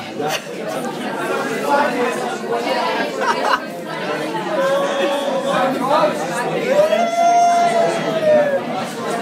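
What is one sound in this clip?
A crowd of young men and women chatters loudly nearby.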